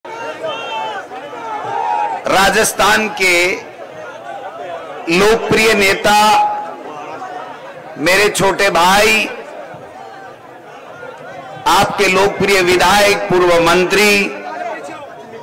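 A man gives a speech loudly and forcefully into a microphone, heard through loudspeakers outdoors.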